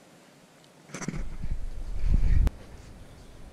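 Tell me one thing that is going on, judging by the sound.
Wind gusts briefly across the microphone outdoors.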